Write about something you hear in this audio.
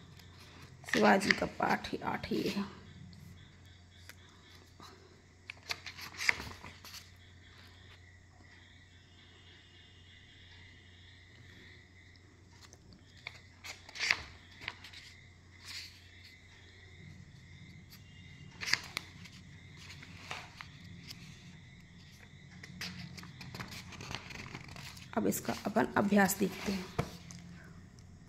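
Paper pages rustle and flap as a book's pages are turned.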